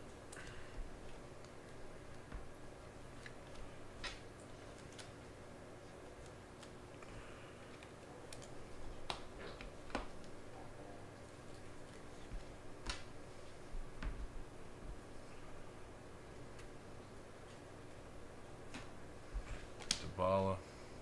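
Cards tap and click against a tabletop.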